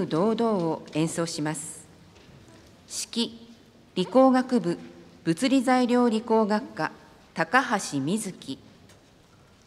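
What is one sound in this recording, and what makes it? A man announces over a loudspeaker in a large echoing hall.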